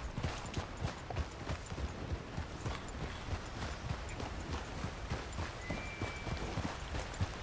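Horse hooves clop steadily on rocky ground.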